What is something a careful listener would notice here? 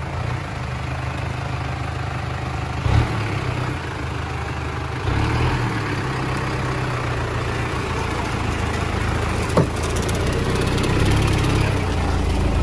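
A truck engine rumbles and strains close by.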